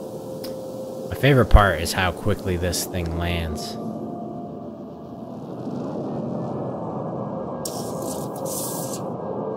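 A spaceship engine hums and roars steadily.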